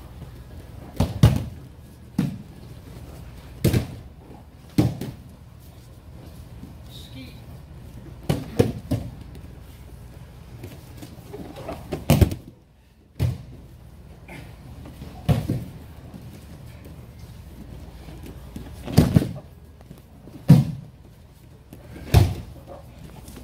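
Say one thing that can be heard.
Bodies thud heavily onto a padded mat, again and again.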